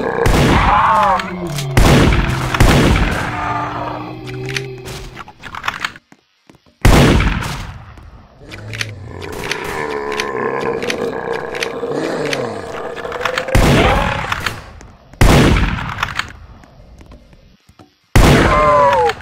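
Gunshots fire loudly, one at a time, each with a short echo.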